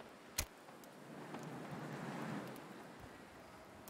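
A small fire catches with a soft rushing whoosh.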